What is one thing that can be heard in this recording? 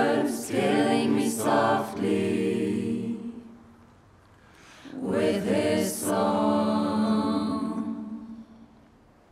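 A man sings loudly in a deep voice, with echo.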